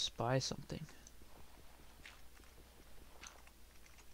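Gravel crunches as it is dug out.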